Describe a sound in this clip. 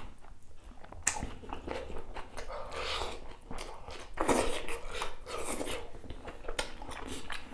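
A man chews wet, crunchy food loudly close to a microphone.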